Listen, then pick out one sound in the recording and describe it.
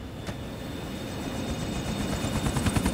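A helicopter engine starts up and grows louder with whirring blades.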